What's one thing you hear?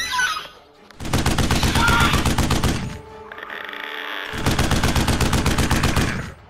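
A drum kit is played fast and hard in loud live music.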